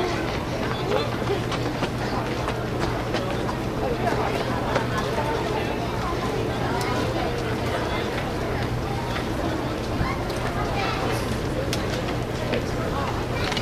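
A crowd of spectators chatters nearby.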